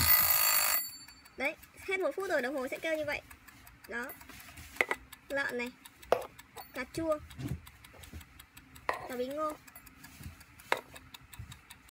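A kitchen timer's dial ticks and clicks as a hand turns it.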